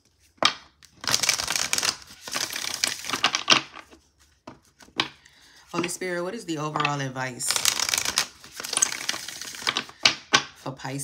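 A deck of cards is riffle shuffled with a quick fluttering whirr.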